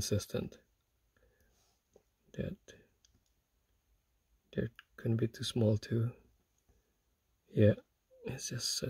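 Small metal parts click and scrape faintly between fingers.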